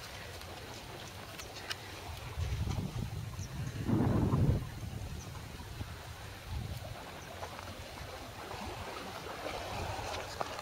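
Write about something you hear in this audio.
Gentle waves lap against a stone edge.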